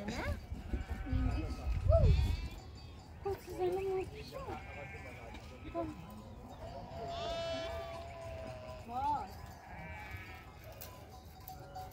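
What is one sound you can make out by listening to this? Goats and sheep bleat nearby.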